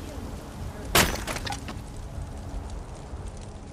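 Split wood pieces clatter onto a pile.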